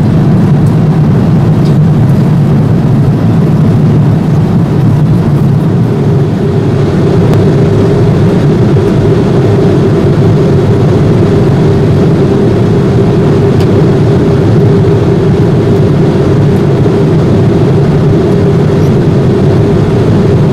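A jet airliner's engines drone steadily inside the cabin.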